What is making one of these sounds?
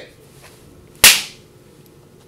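A small launcher fires with a single sharp pop.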